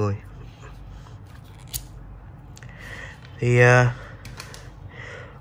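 Plastic buckle pieces click and clatter in someone's hands.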